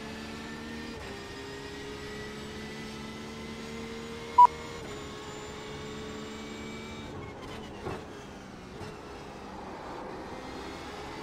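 A racing car engine drones steadily, shifting gears and dropping in pitch under braking.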